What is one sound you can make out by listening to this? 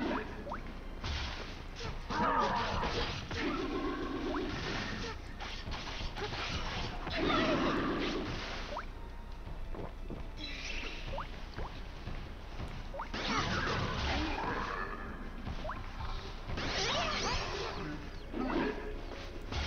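Swords slash and strike monsters in a video game battle.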